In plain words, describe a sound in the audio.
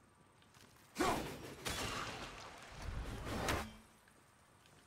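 An axe whooshes through the air.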